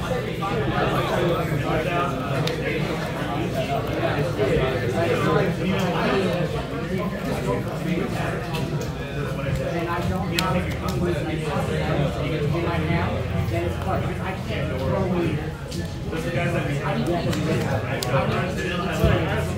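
Playing cards are shuffled and laid down softly on a cloth mat.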